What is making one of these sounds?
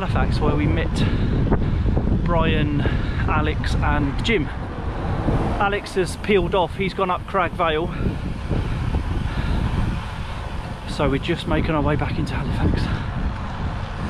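A man talks calmly, close to a microphone.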